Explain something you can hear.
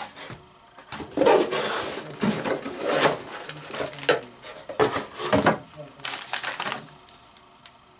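A cardboard box scrapes and rustles as it is handled.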